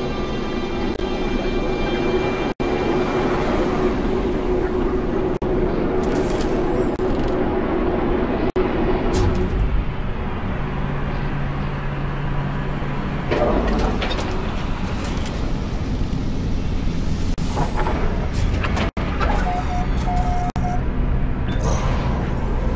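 A spaceship engine hums and roars steadily.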